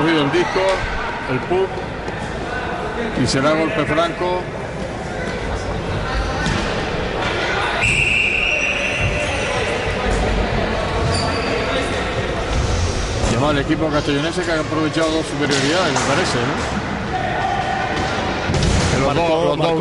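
Hockey sticks clack against a ball and each other.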